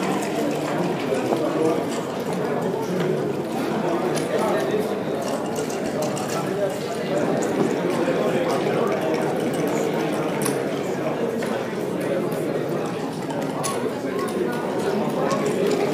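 Game pieces click as they are moved across a board.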